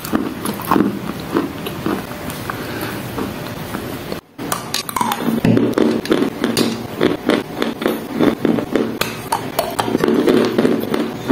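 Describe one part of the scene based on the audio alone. A young woman chews crunchily and wetly close to the microphone.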